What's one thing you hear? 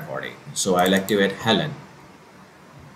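An elderly man speaks calmly through a recording.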